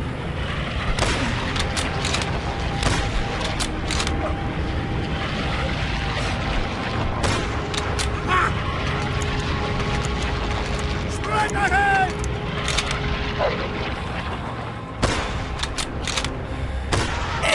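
Rifle shots crack loudly now and then.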